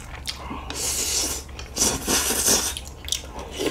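A young man slurps noodles close to the microphone.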